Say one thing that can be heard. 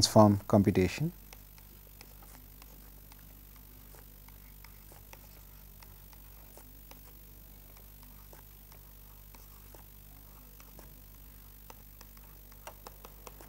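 A pen taps and scratches on a tablet.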